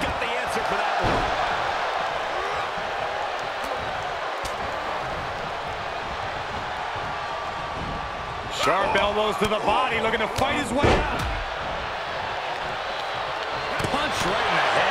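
A large crowd roars and cheers in a large arena.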